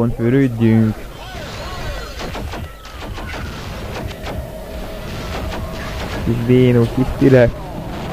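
A pistol fires repeated shots.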